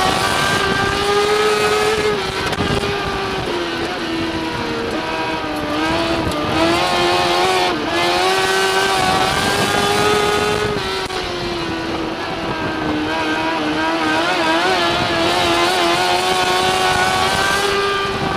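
A race car engine roars loudly up close, rising and falling in pitch as it speeds up and slows down.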